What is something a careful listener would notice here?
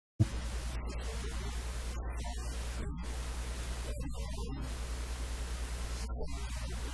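A middle-aged man reads out through a microphone and loudspeaker.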